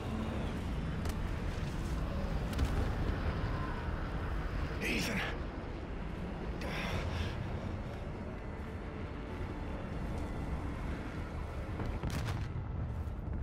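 Explosions crack and boom now and then.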